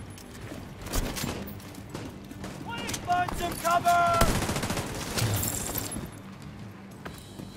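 Gunshots crack in short, sharp bursts.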